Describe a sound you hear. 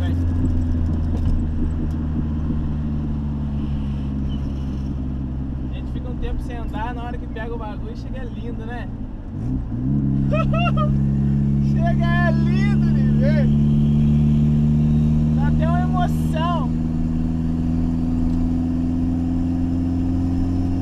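A turbocharged small car engine drones, heard from inside while cruising on a highway.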